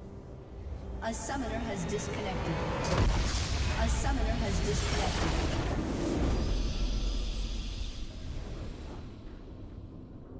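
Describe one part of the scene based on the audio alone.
A game's base explodes with a loud, rumbling blast.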